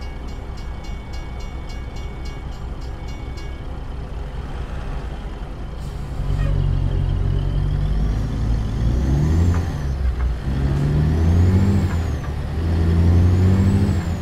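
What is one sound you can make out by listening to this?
A truck engine idles and then revs up as it pulls away.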